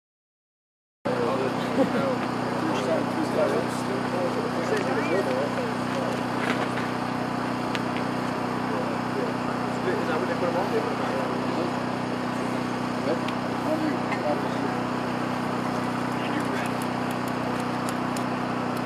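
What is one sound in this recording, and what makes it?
A man talks casually nearby outdoors.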